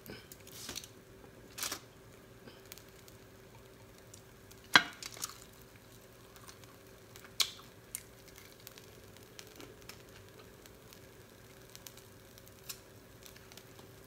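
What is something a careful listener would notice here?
A woman crunches on crispy fried food close to a microphone.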